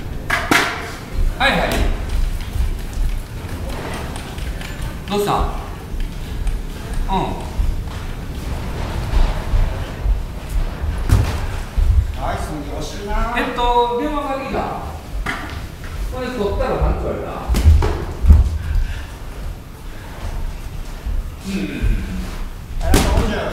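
Feet shuffle and thump on a ring floor.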